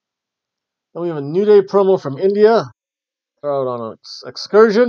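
A middle-aged man talks calmly into a webcam microphone.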